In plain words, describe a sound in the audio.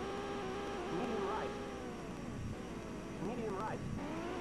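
Tyres squeal briefly as a car corners.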